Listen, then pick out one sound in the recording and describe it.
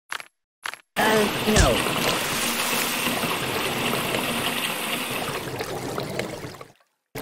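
Water bubbles and churns.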